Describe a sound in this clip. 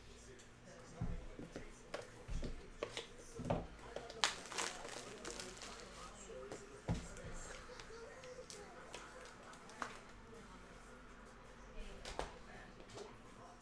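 Cards and objects tap and click on a table.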